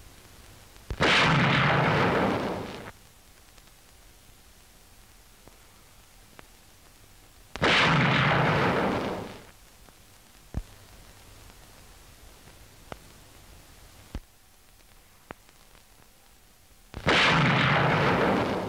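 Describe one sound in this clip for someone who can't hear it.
Women scream loudly in fright.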